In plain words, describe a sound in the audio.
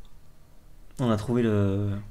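A young man lets out a long, drawn-out sound of thought.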